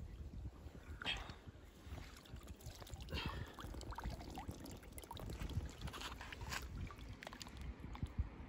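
Water splashes as a large fish is lifted and lowered.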